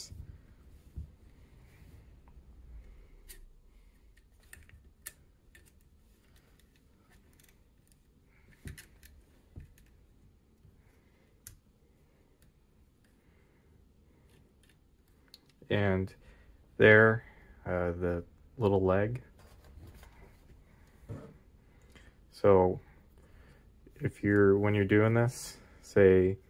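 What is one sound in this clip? Plastic parts click and knock softly.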